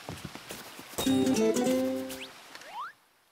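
A sheep bleats.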